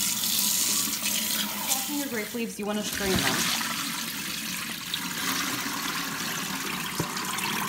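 Tap water runs and splashes onto wet leaves.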